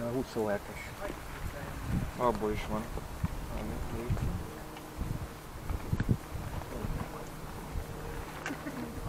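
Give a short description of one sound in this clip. Bicycle tyres roll over paving stones with a low rumble.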